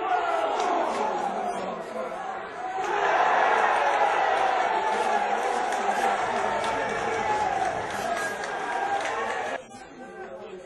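A crowd cheers loudly in a stadium.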